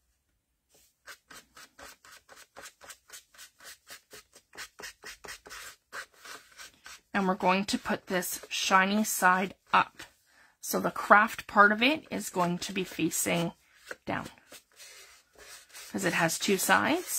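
A paintbrush brushes and taps softly on paper.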